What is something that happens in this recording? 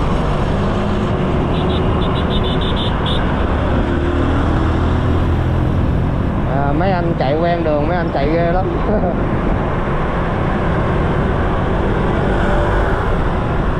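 Wind roars and buffets steadily outdoors.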